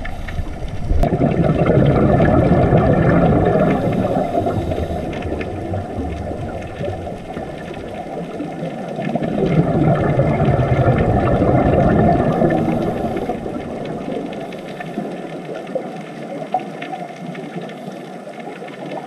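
Bubbles from a diver's breathing gurgle and rumble in loud bursts underwater.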